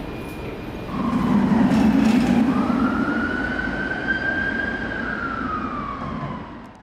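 A tram rolls past on rails.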